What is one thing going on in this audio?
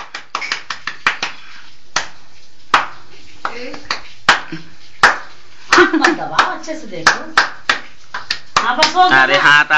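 Hands clap close by in a quick, uneven rhythm.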